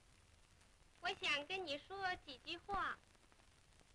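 A young woman speaks playfully in a lilting voice.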